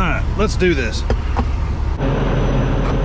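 A truck cab door opens.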